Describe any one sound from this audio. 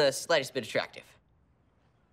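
A young man speaks cheerfully nearby.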